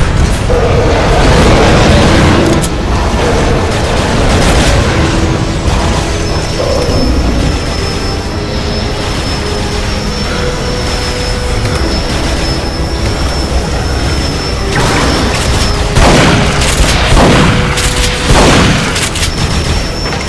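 Gunshots fire in bursts.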